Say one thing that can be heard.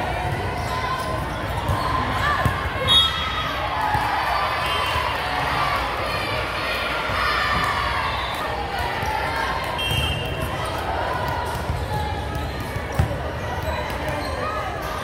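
A volleyball thumps off hands and bounces on a hard floor.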